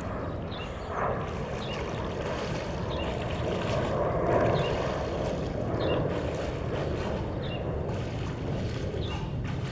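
Water splashes as a man swims.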